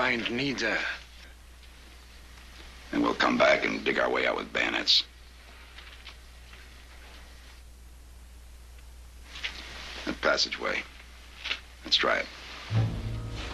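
A man speaks in a low, tense voice.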